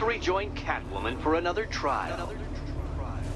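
A man speaks calmly, heard through a loudspeaker.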